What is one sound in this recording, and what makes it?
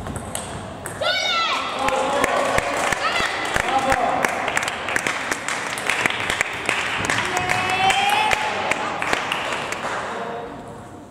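A crowd of people talk and cheer in a large echoing hall.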